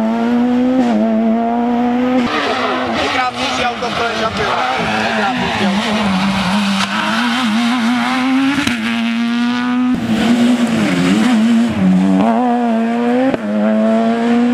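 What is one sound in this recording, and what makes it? A rally car engine roars loudly at high revs.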